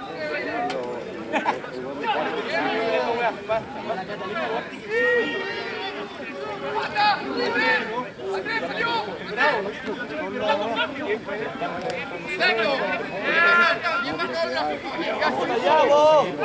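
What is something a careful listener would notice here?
A crowd of men and women shouts and cheers excitedly outdoors.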